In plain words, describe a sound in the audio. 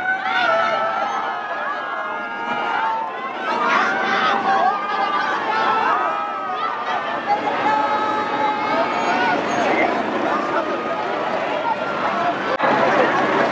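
A large crowd cheers and shouts outdoors on a busy street.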